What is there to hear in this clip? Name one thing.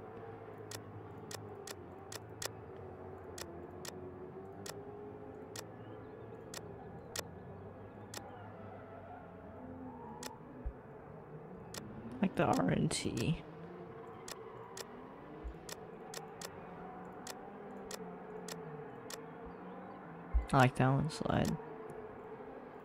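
Game menu selections click sharply, many times.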